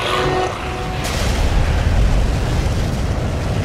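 A huge fiery explosion roars with a deep rumble.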